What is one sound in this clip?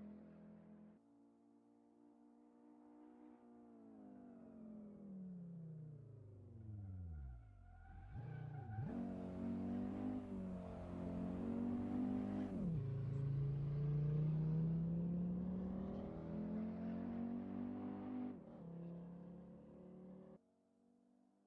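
A car engine roars and revs, its pitch falling as it speeds past.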